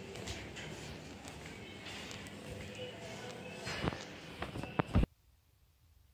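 Footsteps thud down stone stairs.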